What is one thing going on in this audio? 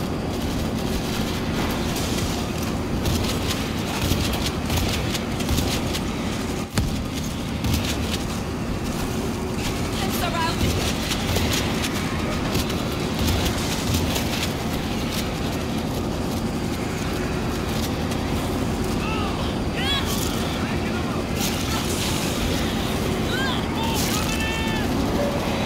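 A horde of zombies growls and shrieks in a dense roar.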